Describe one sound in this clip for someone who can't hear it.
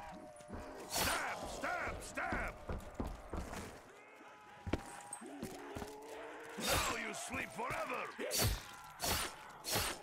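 A knife strikes flesh with a wet slash.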